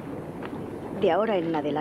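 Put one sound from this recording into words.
An elderly man speaks with animation.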